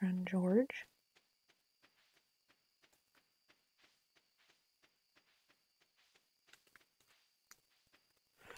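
Footsteps patter steadily on a dirt path.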